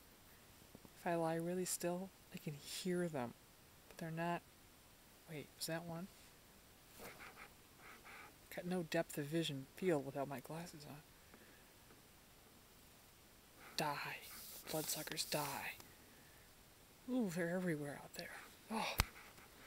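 A middle-aged woman talks casually and close up, with pauses.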